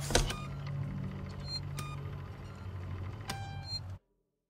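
Buttons on a wall phone click as they are pressed.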